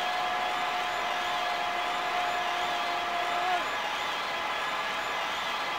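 A stadium crowd roars steadily in an arcade game.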